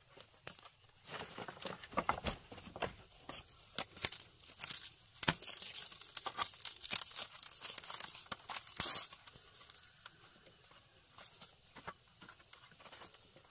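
Leaves rustle and crinkle as hands fold them.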